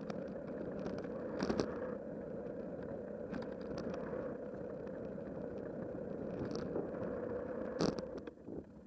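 A bicycle's frame rattles and clatters over bumps.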